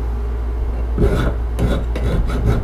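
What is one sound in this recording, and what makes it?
A file scrapes back and forth across metal.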